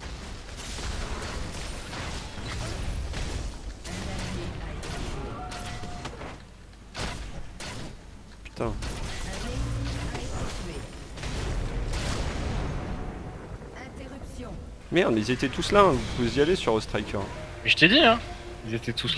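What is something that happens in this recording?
Spells and weapons clash with bursts of game effects.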